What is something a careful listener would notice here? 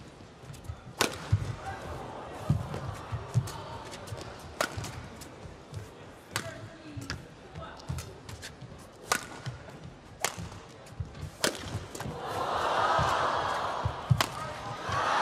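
A shuttlecock is struck back and forth with sharp racket smacks.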